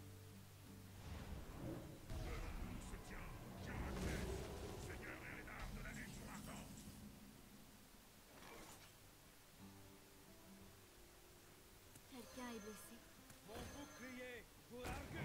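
Magical game sound effects whoosh and chime.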